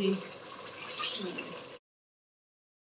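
Hands knead dough in a metal bowl.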